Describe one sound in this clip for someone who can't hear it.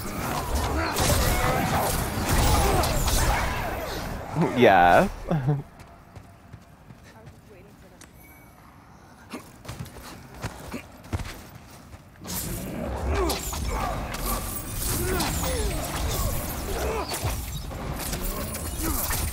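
Magic crackles and whooshes during a fight.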